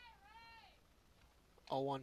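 A bat cracks against a softball.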